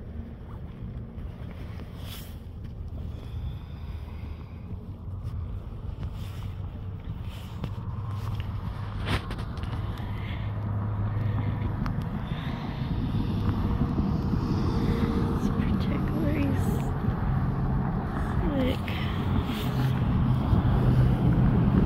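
Wind rumbles and buffets outdoors, growing stronger.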